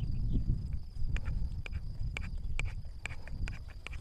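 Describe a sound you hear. A metal spoon clinks against a small coffee pot.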